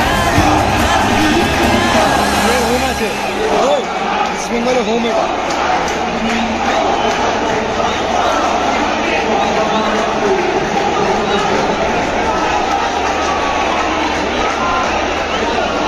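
A large stadium crowd roars and chatters in a dense, echoing din outdoors.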